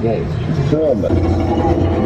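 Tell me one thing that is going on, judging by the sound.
A man talks calmly close by inside a car.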